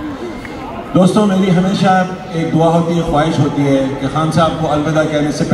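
A group of men sing together in chorus through loudspeakers.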